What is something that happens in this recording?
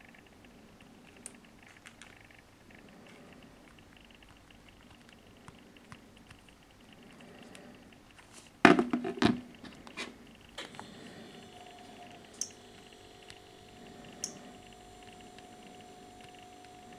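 Fingers tap lightly on a phone's touchscreen.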